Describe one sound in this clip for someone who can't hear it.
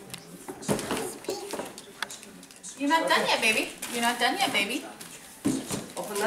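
A young girl speaks in a small, excited voice.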